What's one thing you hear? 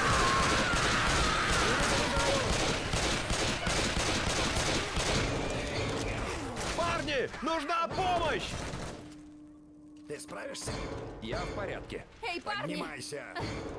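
A zombie snarls and growls up close.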